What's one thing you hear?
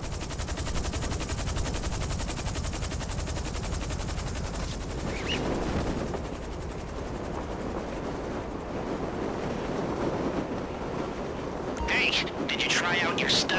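Wind roars steadily during a fall.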